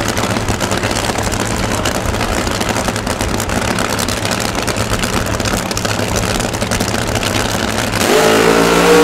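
A drag racing engine idles with a loud, rough rumble.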